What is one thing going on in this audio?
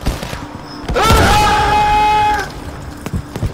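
A man shouts loudly into a close microphone.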